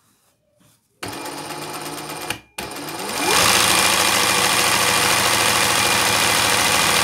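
A sewing machine whirs rapidly, speeding up and then running steadily.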